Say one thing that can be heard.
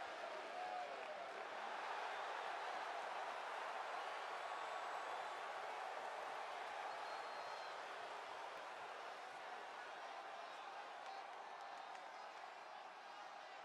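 A large arena crowd cheers loudly and steadily, slowly quieting.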